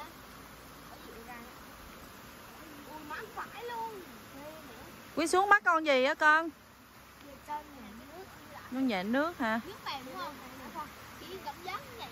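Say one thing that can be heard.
Young children talk and shout excitedly nearby, outdoors.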